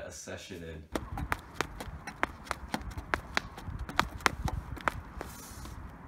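Sneakers thud on a wooden bench in quick steps.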